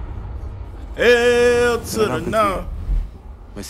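A young man hums and sings along loudly.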